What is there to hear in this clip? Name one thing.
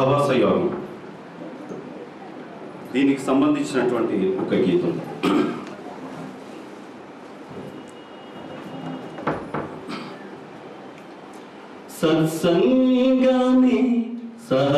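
A middle-aged man speaks into a microphone close by, in bursts with pauses.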